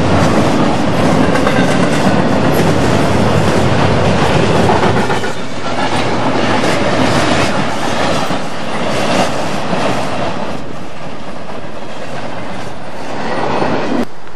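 Double-stack container freight cars rumble and clatter past on steel rails.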